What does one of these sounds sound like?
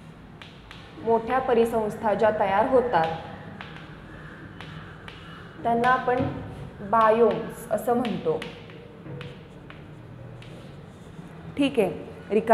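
A young woman speaks calmly, as if teaching.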